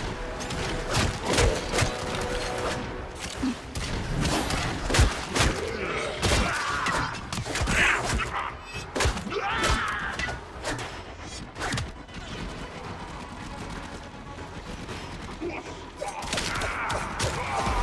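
Gunshots and weapon blasts ring out in quick bursts.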